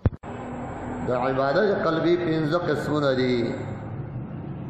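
A man chants loudly through a microphone.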